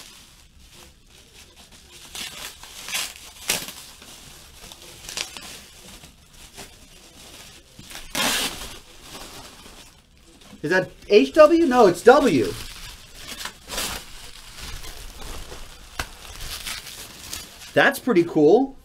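Bubble wrap crinkles and rustles as it is handled.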